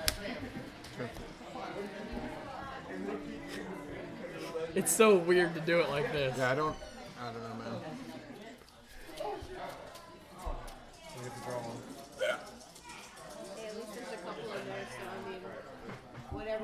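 Two young men talk casually nearby.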